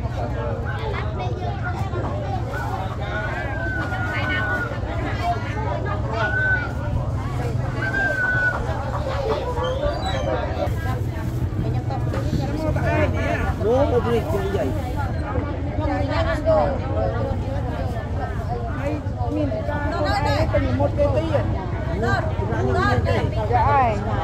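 Women talk and chatter nearby among a murmuring crowd.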